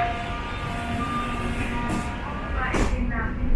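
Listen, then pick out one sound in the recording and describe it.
A door chime sounds a short electronic tone.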